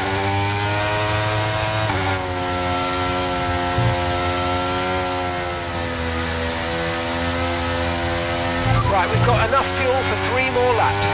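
A racing car engine whines at high revs, dropping in pitch as it shifts gear.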